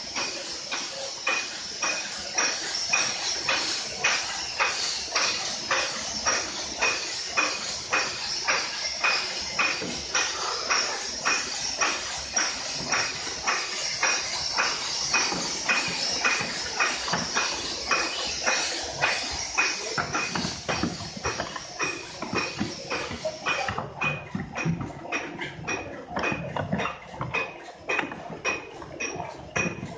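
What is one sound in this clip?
A packaging machine clatters with a fast, steady rhythm of mechanical clicks.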